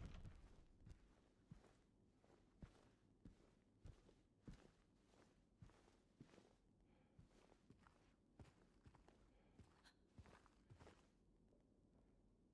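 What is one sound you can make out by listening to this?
Footsteps tread slowly.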